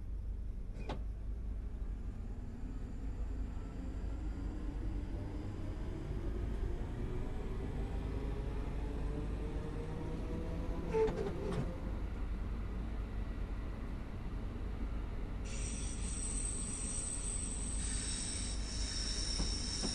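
An electric train motor whines, rising steadily in pitch as the train speeds up.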